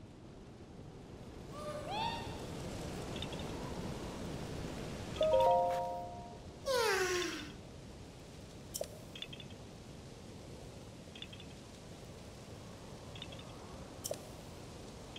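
Wind blows steadily through a sandstorm.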